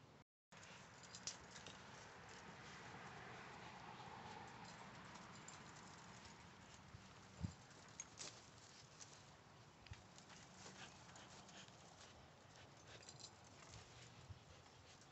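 A dog tugs on a rope, its paws thumping on grass.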